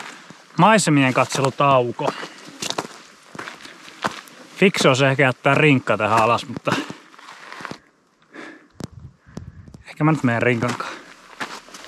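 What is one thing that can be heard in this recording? A man talks calmly and close to a microphone, outdoors.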